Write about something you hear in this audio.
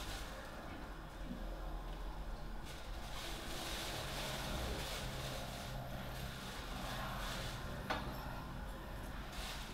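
A plastic bag rustles and crinkles in a woman's hands.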